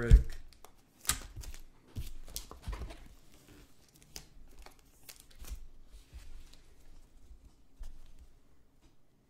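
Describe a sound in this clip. Trading cards rustle and slap as hands shuffle through them.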